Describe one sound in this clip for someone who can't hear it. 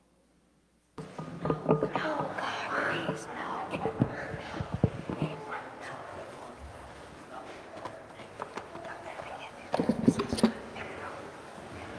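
A man talks in an echoing hall, heard close to a microphone.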